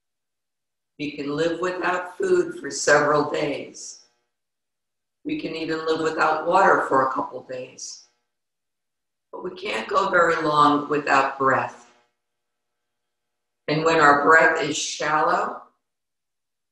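A woman speaks calmly and softly into a close microphone, in short phrases with pauses.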